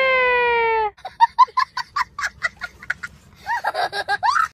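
A young boy laughs loudly and gleefully close by.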